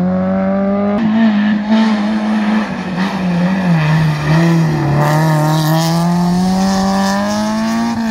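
A small hatchback rally car's engine revs hard through a hairpin and pulls away.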